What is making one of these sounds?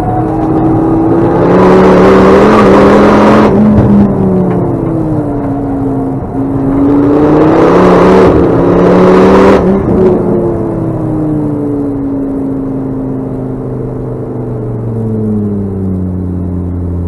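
A car engine revs hard, rising and falling in pitch as the gears change.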